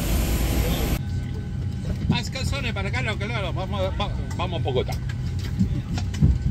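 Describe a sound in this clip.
A man talks with animation in a cabin full of chatter.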